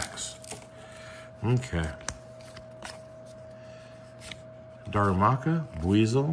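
Playing cards slide and rub against each other.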